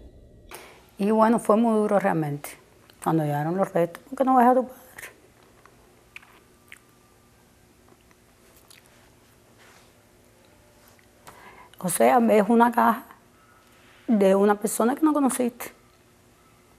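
A woman speaks calmly into a close microphone, with pauses.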